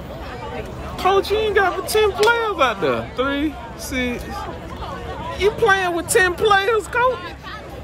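Young men on the sideline shout and cheer loudly nearby.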